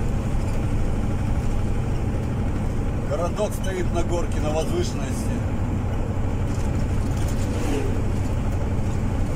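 A vehicle's engine hums steadily with the low rumble of tyres on the road.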